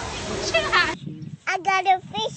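A small child talks excitedly close by.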